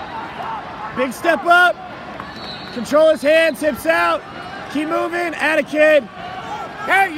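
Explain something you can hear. Spectators shout and cheer loudly nearby.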